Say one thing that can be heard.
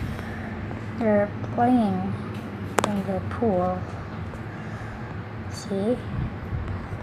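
A young child calls out in a high voice nearby.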